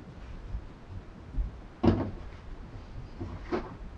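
Hands roll and press soft dough on a wooden table.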